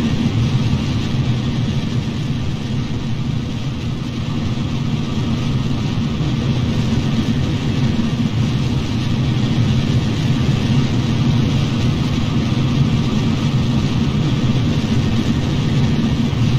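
Rocket engines roar steadily.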